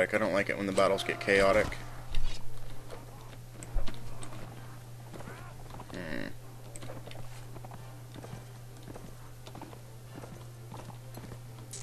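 Horse hooves pound steadily on grass.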